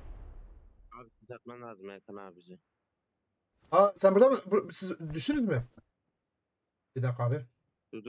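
A man speaks close to a microphone with animation.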